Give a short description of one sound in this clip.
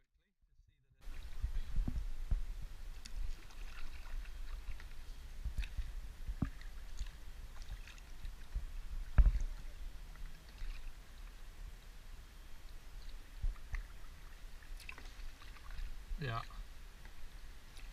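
A paddle splashes and drips in calm water.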